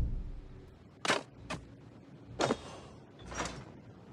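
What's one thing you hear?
Wooden crates knock and scrape as they are moved.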